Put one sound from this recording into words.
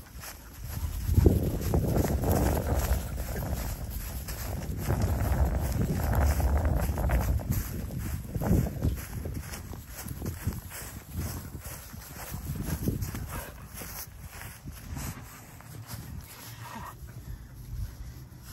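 Dry grass rustles and crunches under a dog's paws.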